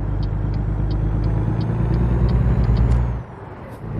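A turn signal ticks steadily.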